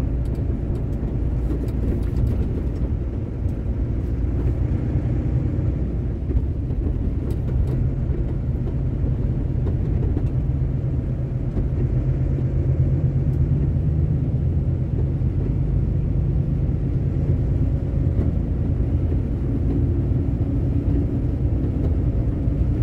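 A vehicle's engine drones steadily from inside the cab.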